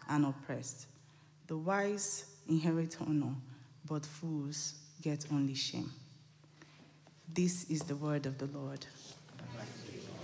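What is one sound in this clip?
A woman reads aloud calmly into a microphone.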